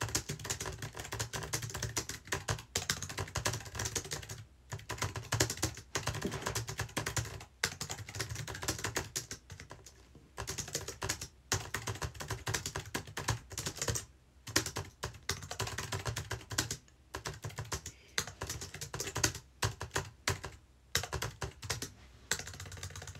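Fingers tap rapidly on a keyboard.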